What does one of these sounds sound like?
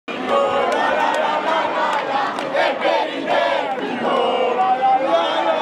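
A large crowd of young people chants and shouts loudly outdoors.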